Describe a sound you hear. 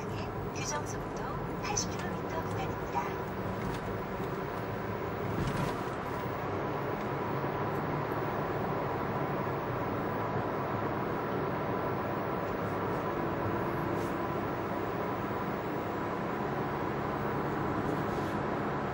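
A car engine and road noise hum steadily inside a moving car.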